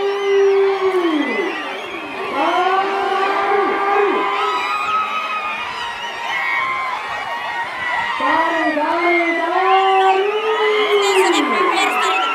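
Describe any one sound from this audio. A large crowd shouts and whoops loudly outdoors.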